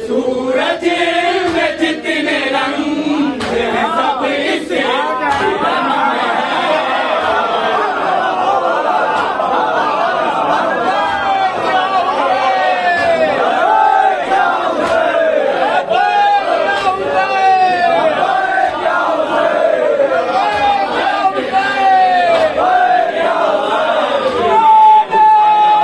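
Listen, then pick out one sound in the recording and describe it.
A crowd of men chants along in unison.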